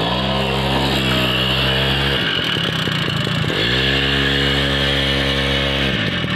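A motorcycle wheel churns through loose soil.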